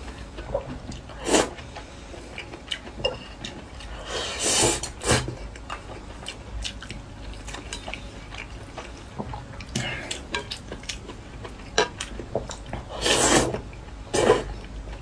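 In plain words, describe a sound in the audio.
A young man chews food wetly close to the microphone.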